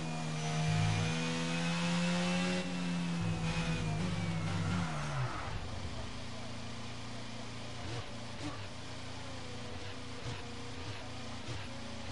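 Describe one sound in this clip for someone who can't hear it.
A racing car engine screams at high revs, then drops in pitch as the car slows to a low, rumbling idle.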